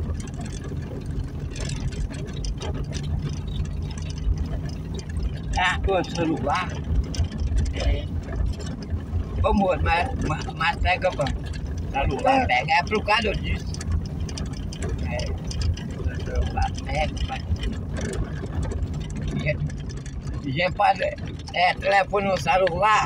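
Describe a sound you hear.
Tyres rumble over a cobbled road.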